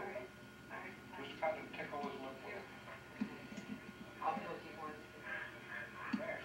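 An elderly man talks softly close by.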